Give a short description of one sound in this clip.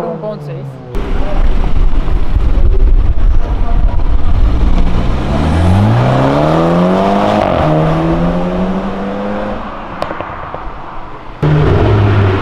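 A sports car engine roars and climbs in pitch as the car accelerates away.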